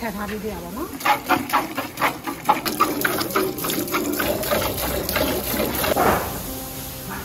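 Milk squirts rhythmically into a metal bucket.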